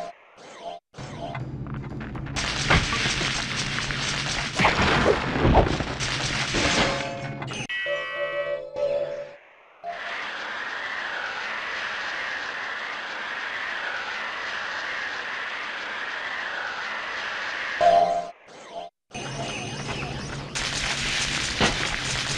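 Ice shards whoosh and crackle as they are fired in rapid bursts.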